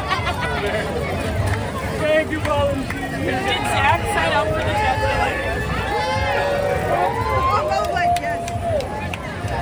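A large crowd of men and women chatter and call out outdoors.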